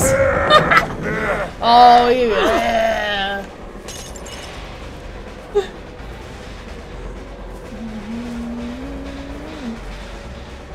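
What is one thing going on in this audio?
A woman speaks animatedly into a microphone, close by.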